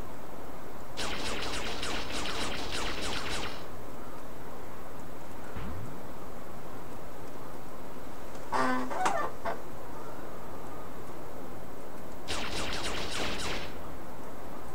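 Rapid machine-gun fire rattles in short bursts.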